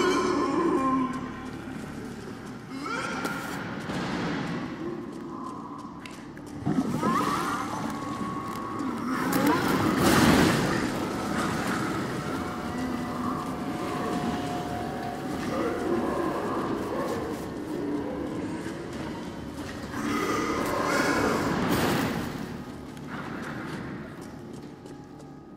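Footsteps crunch over rubble on a stone floor.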